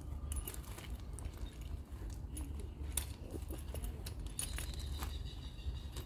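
A metal object clinks and rattles on gravel.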